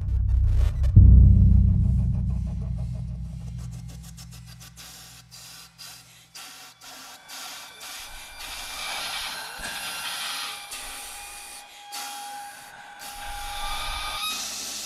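Musicians strike percussion with sharp clicking hits.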